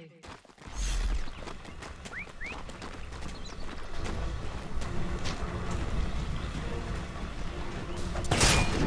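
Magic spells whoosh and crackle in a fast fight.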